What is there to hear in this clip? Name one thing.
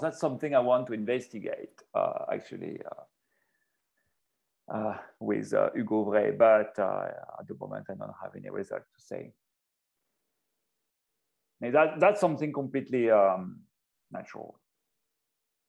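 A man speaks calmly over an online call, pausing now and then.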